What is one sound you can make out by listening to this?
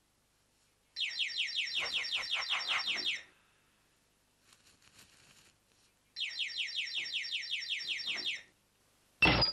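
A doorbell buzzes in rapid pulses.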